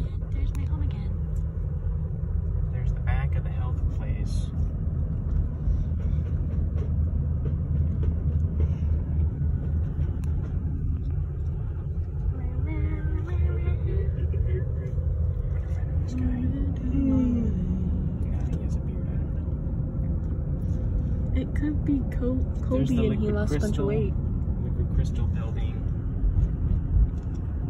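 A car engine hums steadily, with road rumble heard from inside the car.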